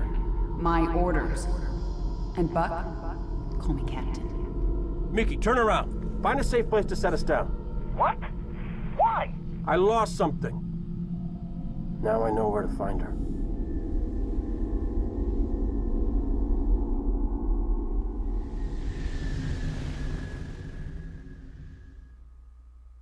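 A deep rumble of music and engines plays steadily and fades out.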